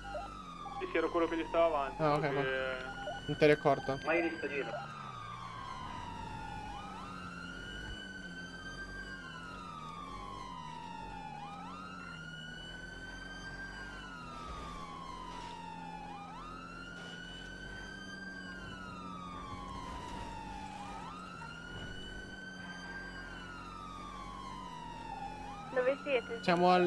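A police siren wails, rising and falling in a slow repeating cycle.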